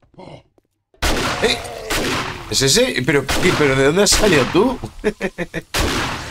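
A zombie growls and snarls close by.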